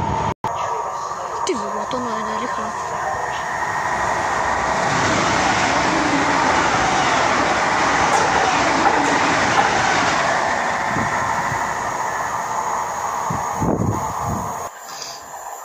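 A freight train rumbles along the tracks close by.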